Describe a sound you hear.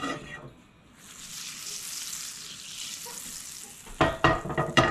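Butter sizzles as it melts in a hot pan.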